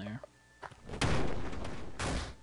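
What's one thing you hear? A heavy thump of a headbutt lands.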